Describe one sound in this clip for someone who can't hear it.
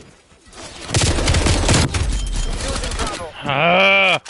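Rapid gunfire bursts loudly nearby.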